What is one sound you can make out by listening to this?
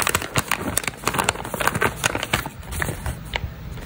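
A plastic wrapper crinkles and rustles as it is handled.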